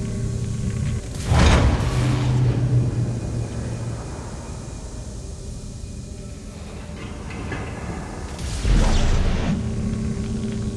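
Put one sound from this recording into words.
A rushing whoosh of thrusters bursts out and fades.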